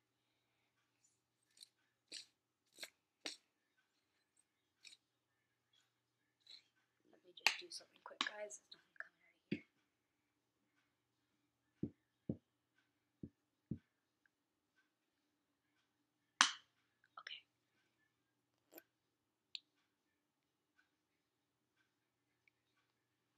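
A small plastic object is tossed and caught in a hand with light taps.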